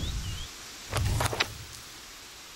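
A book opens with a papery thump.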